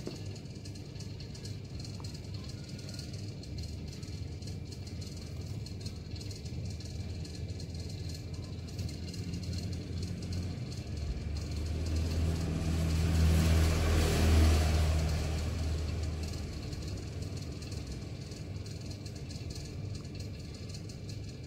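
Fingertips tap softly on a tablet's glass.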